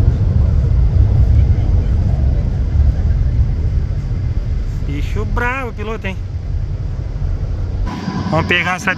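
A jet airliner roars as it climbs overhead.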